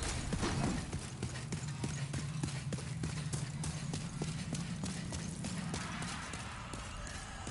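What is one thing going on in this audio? Armored footsteps clink steadily on stone.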